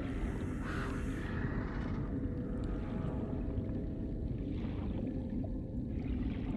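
A deep underwater rumble drones steadily.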